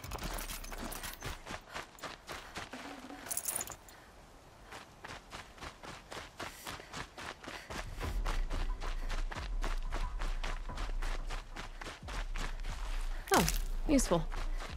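Footsteps run quickly through rustling grass.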